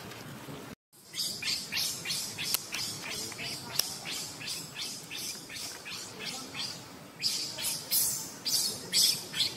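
A baby macaque shrieks in repeated high cries.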